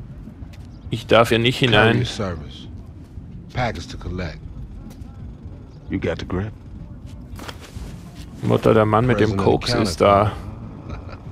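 A young man speaks in a calm, casual voice nearby.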